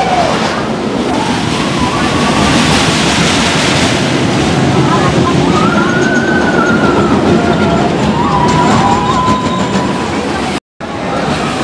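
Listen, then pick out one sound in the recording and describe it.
A roller coaster train roars and rattles along its track.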